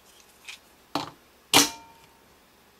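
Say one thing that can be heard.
A plastic toy clicks as its head is pressed into place.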